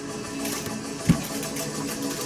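A card taps down on a table.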